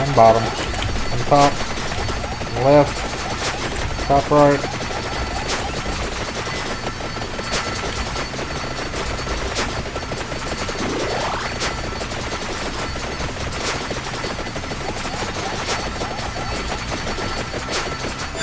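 Video game sound effects patter and chime rapidly.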